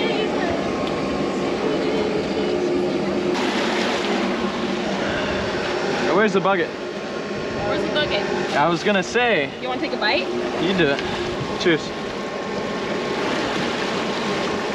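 Wind and sea water rush steadily outdoors.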